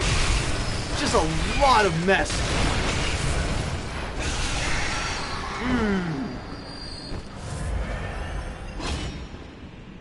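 Heavy blows and clashes ring out in a game fight.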